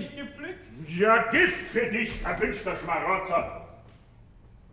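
An elderly woman shouts angrily.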